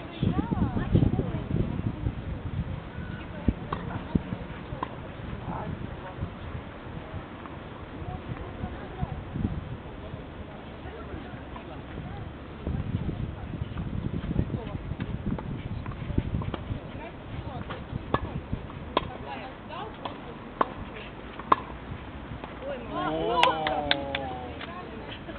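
Tennis balls are struck with rackets and bounce on a clay court.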